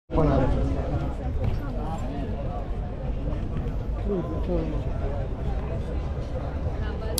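A crowd murmurs outdoors with many voices chattering nearby.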